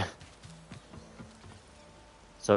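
Footsteps clank on a metal deck.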